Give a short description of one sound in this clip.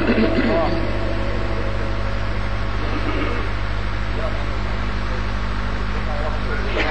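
An elderly man chants slowly into a microphone.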